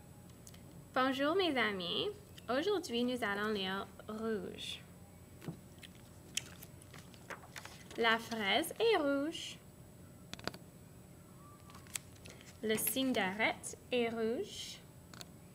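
A young woman speaks clearly and slowly close to a microphone, in short bursts with pauses.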